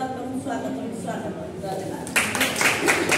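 A woman speaks calmly to a small group.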